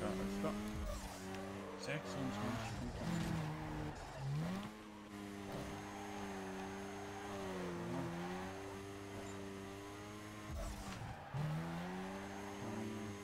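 Tyres squeal while the car slides sideways.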